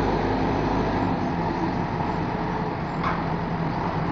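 Coal tumbles and rattles from a loader bucket into a truck bed.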